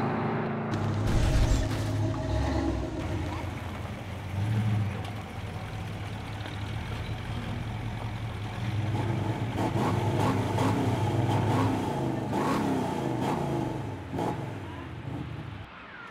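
A car engine rumbles and revs nearby.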